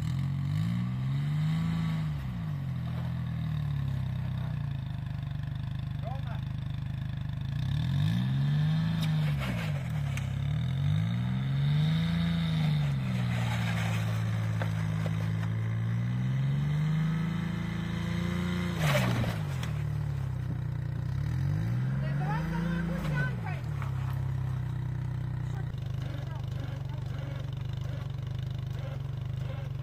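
A tracked vehicle's engine idles and revs up and down.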